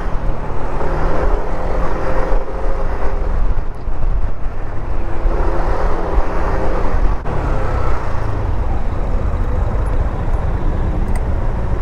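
Car engines idle and hum in slow, dense traffic outdoors.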